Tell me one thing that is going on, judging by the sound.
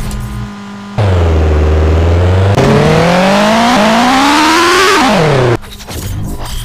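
A truck engine idles and then revs up loudly, rising in pitch.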